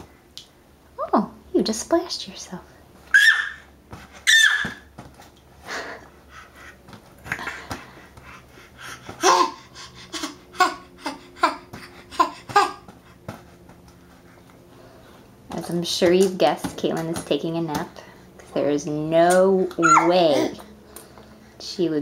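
A baby babbles and squeals excitedly close by.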